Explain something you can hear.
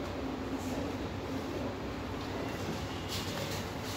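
An elevator call button clicks once.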